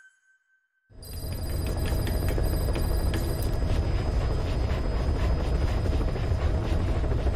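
A helicopter engine drones steadily from inside the cabin.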